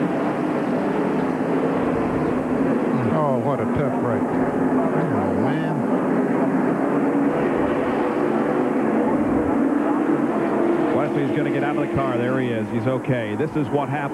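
Race car engines roar loudly and steadily.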